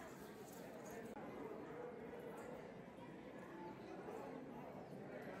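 A crowd of people chatters in a lively murmur outdoors.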